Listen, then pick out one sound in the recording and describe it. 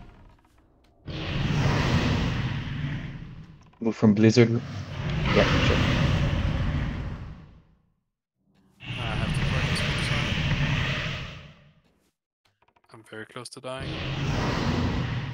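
A magic spell whooshes and crackles in repeated bursts.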